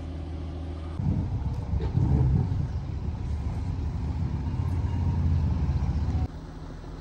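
Wind buffets outdoors with a low rumble.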